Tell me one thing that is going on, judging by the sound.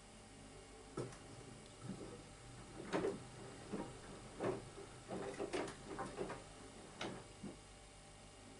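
Laundry thumps and sloshes as a washing machine drum turns.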